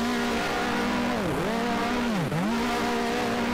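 Other racing cars roar past, their engines dropping in pitch.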